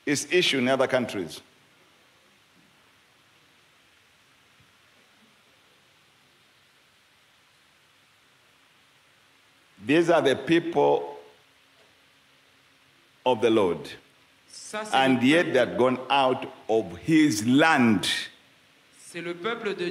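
A man preaches with animation through a microphone and loudspeakers.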